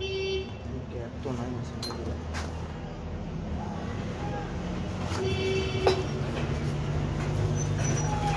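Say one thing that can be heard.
Metal tool parts clink and knock as they are handled.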